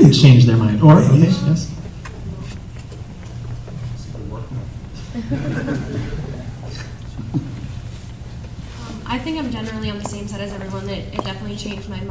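A man speaks calmly over a loudspeaker in a large hall.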